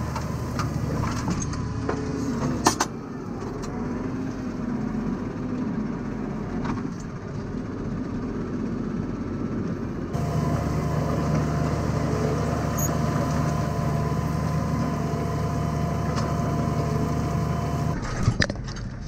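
A plough rattles and clanks as it turns the soil.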